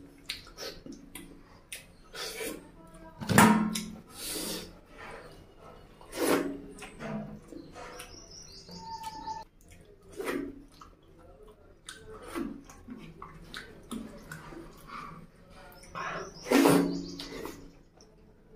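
A man slurps food noisily.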